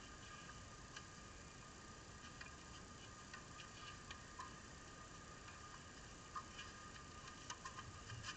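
Tennis rackets strike a ball with sharp pops, some nearby and some far off.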